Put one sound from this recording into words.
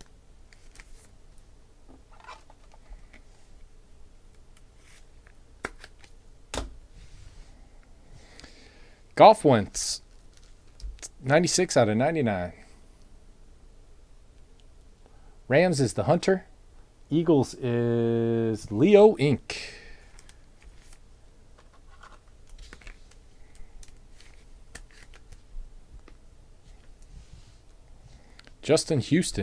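Trading cards rustle and tap softly as hands handle them.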